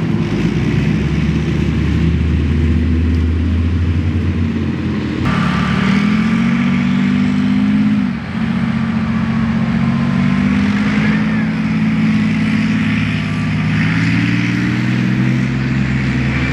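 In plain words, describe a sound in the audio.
A tank's engine roars loudly nearby.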